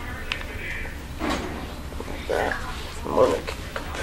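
Shoelaces rustle as they are pulled tight.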